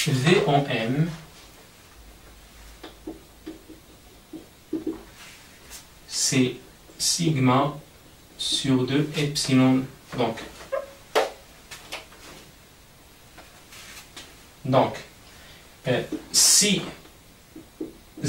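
A young man explains calmly, close by, with pauses.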